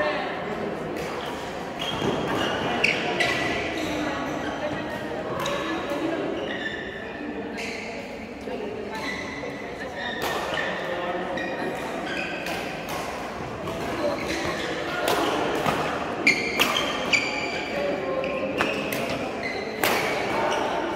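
Sounds echo around a large hall.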